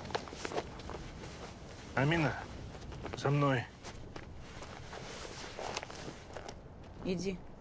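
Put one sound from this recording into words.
Cloth rustles as garments are pulled on.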